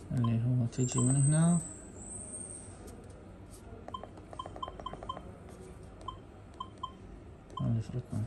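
An electronic device beeps briefly with each button press.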